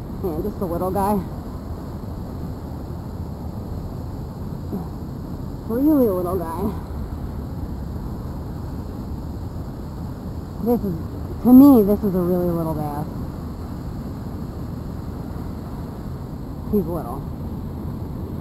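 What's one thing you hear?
Water laps gently against a stone edge.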